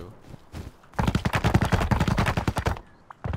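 A hammer strikes wood with quick knocks.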